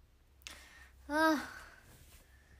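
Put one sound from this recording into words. A young woman lets out a loud, drawn-out sigh or yawn close by.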